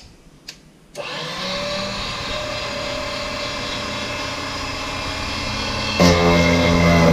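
A small electric motor starts and whirs steadily.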